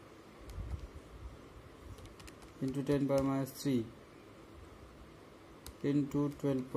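Calculator keys click softly as they are pressed.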